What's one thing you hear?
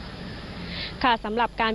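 A young woman speaks clearly into a microphone.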